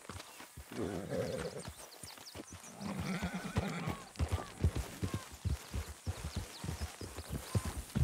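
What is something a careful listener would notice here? Horse hooves clop on a dirt path.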